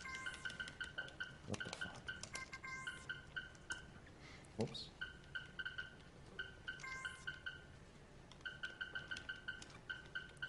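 Short electronic game beeps chirp in quick runs.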